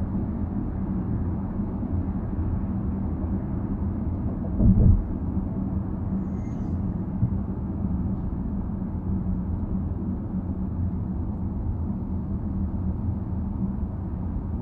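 A car's engine hums and tyres roll steadily on a road, heard from inside the car.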